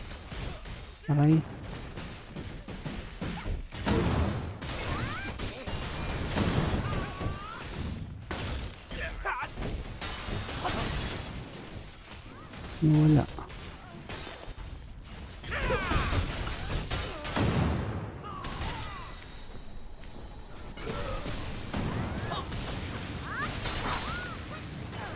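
Game combat sounds of magic blasts and weapon hits ring out in quick bursts.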